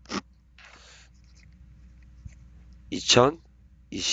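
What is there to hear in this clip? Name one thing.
A pen scratches quickly across paper.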